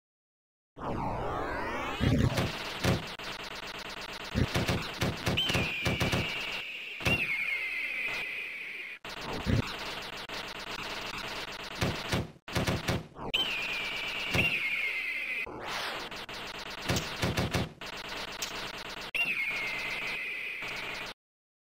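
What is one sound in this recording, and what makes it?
Shots fire rapidly in an arcade game.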